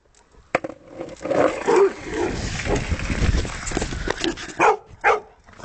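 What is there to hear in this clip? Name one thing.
Skateboard wheels rumble over rough asphalt.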